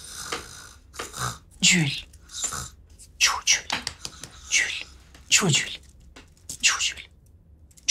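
A man groans and gasps loudly close by.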